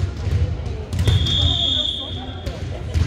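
A whistle blows sharply.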